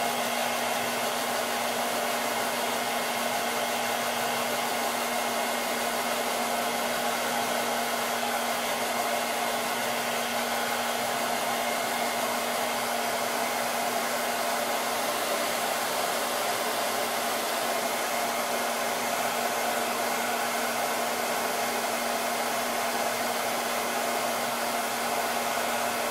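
A heat gun blows with a steady, loud whirring roar.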